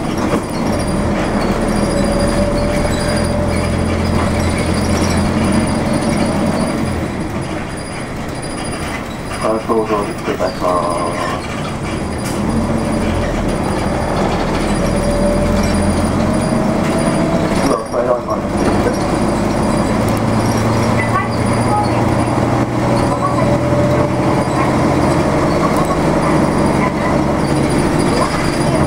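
A vehicle's engine hums steadily from inside as it drives along a street.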